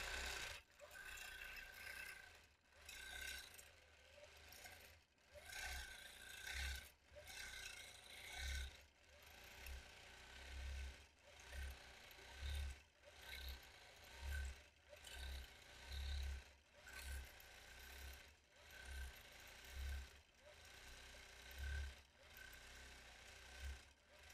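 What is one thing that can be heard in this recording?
A sewing machine hums and stitches rapidly, speeding up and slowing down in bursts.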